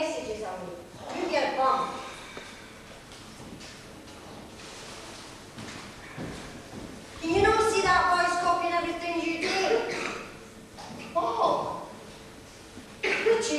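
A man speaks loudly in a hall with some echo.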